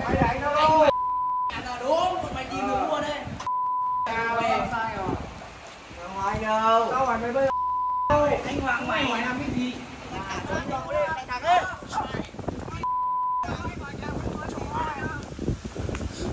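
Young men shout and argue loudly nearby.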